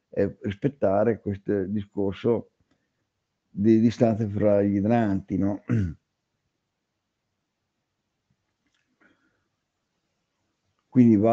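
A man speaks calmly through an online call microphone, in bursts with pauses.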